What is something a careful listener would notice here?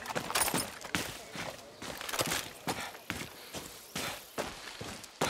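Footsteps crunch steadily on dirt and stones.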